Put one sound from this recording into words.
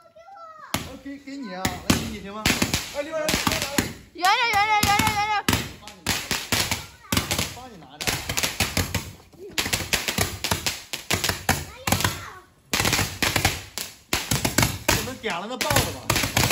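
Fireworks hiss and crackle as sparks shoot out.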